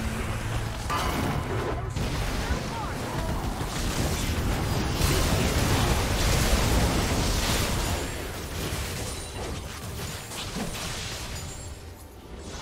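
Spells blast and crackle in a busy video game battle.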